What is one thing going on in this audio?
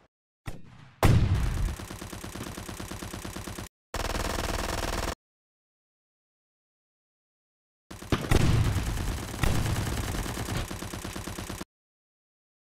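A gun fires rapid bursts of automatic shots.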